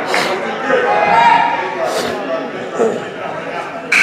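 A group of young players shout together as they break from a huddle.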